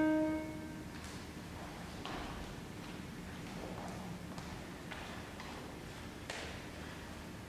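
Footsteps tap on a hard floor in an echoing hall.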